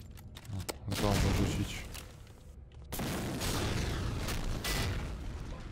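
A large explosion roars and rumbles.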